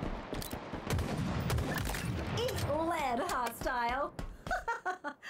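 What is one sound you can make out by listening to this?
A rifle fires rapid shots.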